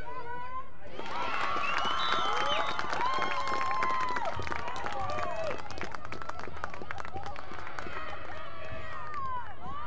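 Young women cheer loudly and excitedly.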